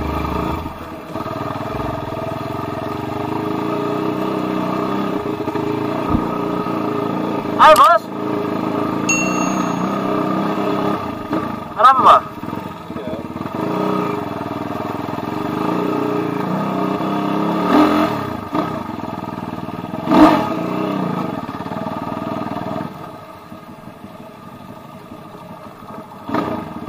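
A motorcycle engine hums and revs steadily.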